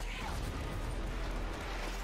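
A flamethrower roars with a burst of fire.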